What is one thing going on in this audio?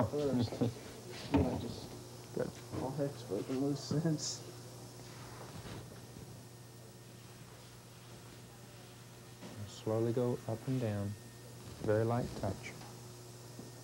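A man speaks calmly nearby, in short bursts.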